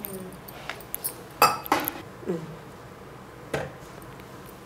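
A metal spoon clinks against a steel pot.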